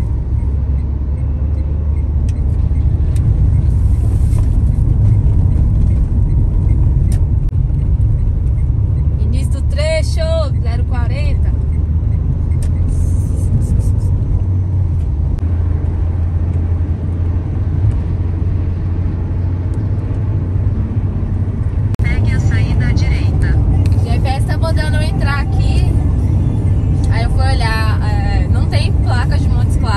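A car engine hums and tyres roar steadily on a highway, heard from inside the car.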